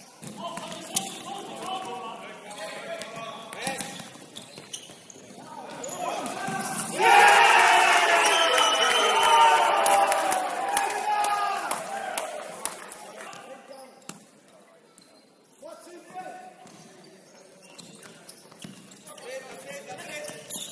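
A ball thuds sharply as players kick it.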